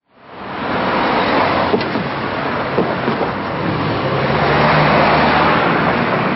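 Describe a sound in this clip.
A car's tyres thump over a speed bump.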